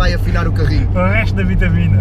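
Two young men laugh together.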